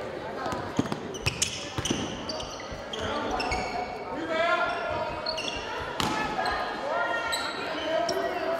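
Players and onlookers call out in a large echoing hall.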